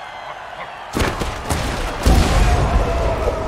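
Football players crash together with heavy thuds.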